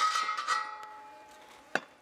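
A knife taps on a wooden board.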